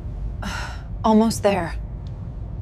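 A woman speaks up close.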